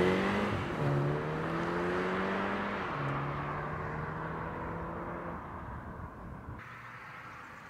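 A car engine roars as the car drives away and fades.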